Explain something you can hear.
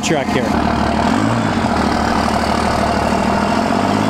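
A pickup truck drives up slowly, its exhaust rumbling loudly.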